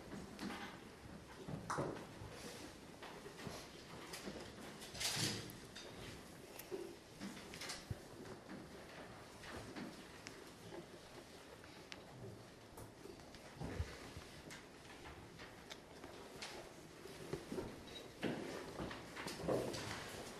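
Children murmur and talk quietly in a room.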